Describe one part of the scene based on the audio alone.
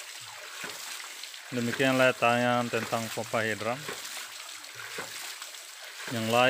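Water gushes and splashes from a pump.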